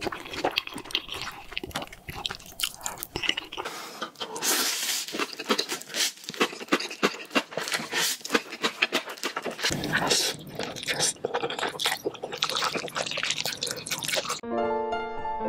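A woman slurps noodles close to the microphone.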